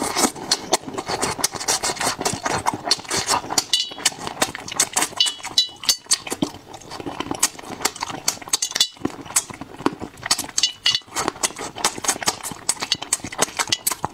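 A man chews food noisily and wetly close to a microphone.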